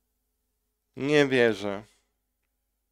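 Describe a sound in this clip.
A man speaks briefly close to a microphone.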